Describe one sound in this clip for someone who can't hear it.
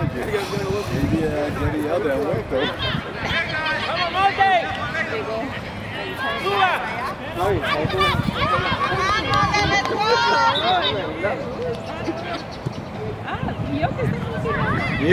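Children shout and call out to each other outdoors.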